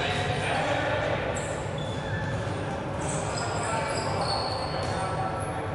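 A ball thuds as it is hit.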